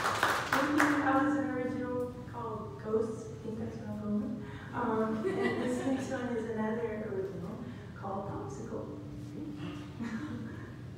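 A young woman talks calmly through a microphone.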